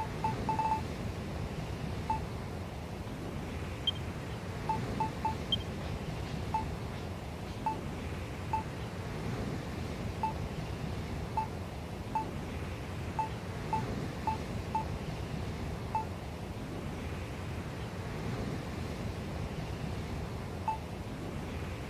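Short menu blips tick as choices change.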